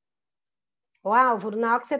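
A woman speaks clearly through an online call.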